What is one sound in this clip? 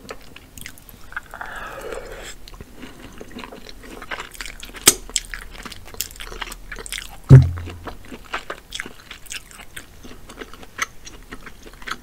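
A woman chews food wetly and loudly close to a microphone.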